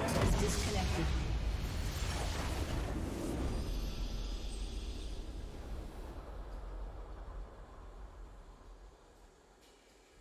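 A triumphant game fanfare swells and slowly fades away.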